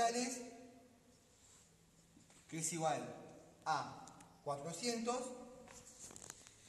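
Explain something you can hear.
A man speaks calmly nearby in an echoing room.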